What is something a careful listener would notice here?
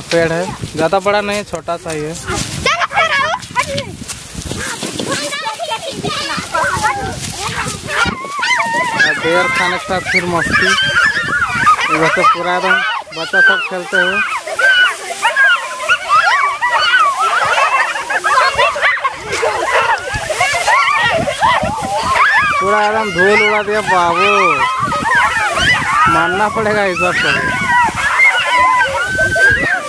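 Children shout and laugh playfully outdoors.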